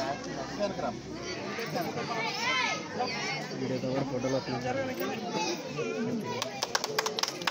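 A crowd of people chatter and call out nearby.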